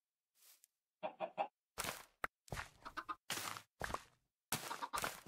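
Short crunchy rustles of plants being fertilised sound in quick bursts.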